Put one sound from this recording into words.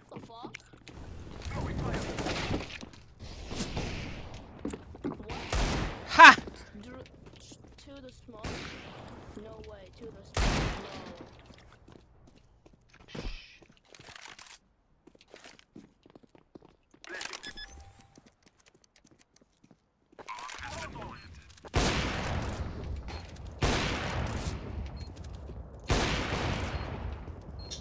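Gunshots ring out sharply, one after another.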